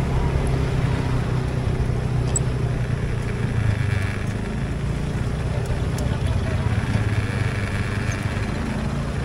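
A motorcycle engine rumbles steadily up close while riding.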